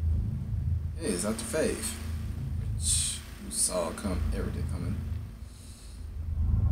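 A man speaks in a deep, calm voice nearby.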